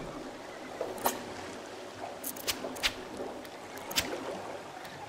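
A fishing reel clicks sharply a few times.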